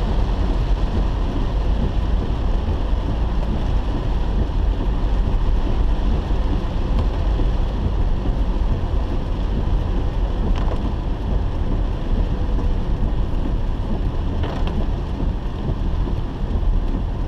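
Heavy wind buffets a car with a low rumble.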